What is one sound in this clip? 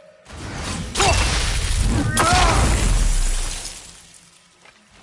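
An axe strikes a creature with a crackling icy burst.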